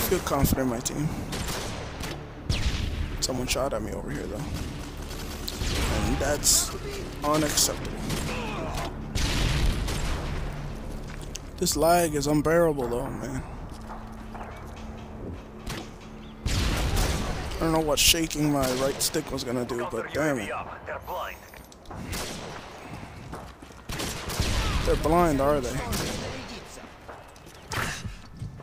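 A rifle fires in short, sharp bursts.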